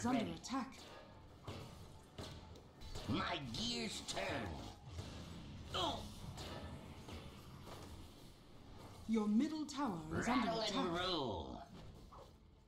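Game battle effects clash and crackle with magic blasts.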